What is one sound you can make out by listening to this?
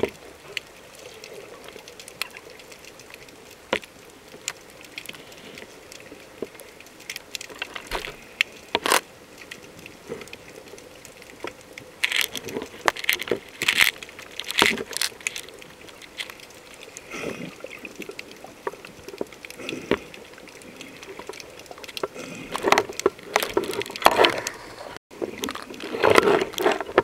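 Water gurgles and bubbles close by, muffled underwater.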